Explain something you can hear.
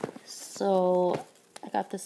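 A foil wrapper crinkles and rustles close by.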